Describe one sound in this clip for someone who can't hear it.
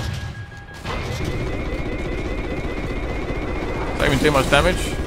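A warning alarm beeps rapidly.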